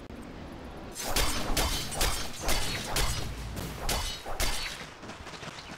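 Weapons clash and magic blasts crackle in a busy fight.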